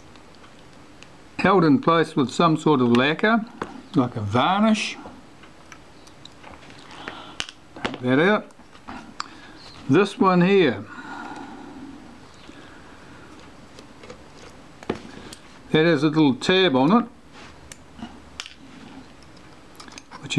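Small metal parts click and tick as they are handled with a tiny screwdriver.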